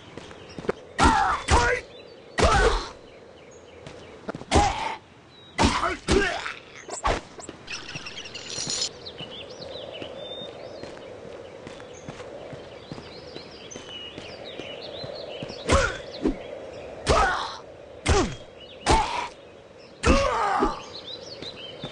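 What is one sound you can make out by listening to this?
Weapon blows strike creatures in loud, quick bursts.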